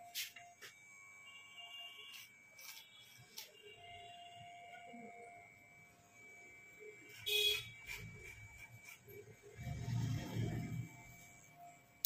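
An electric hair clipper buzzes steadily close by.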